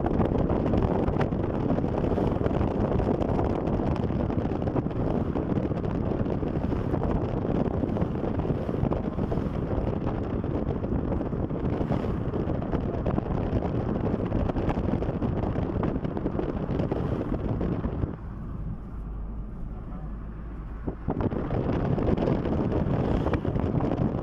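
Wind rushes loudly past an open window of a fast-moving car.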